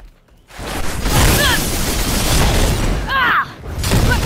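A loud magical energy blast crackles and roars.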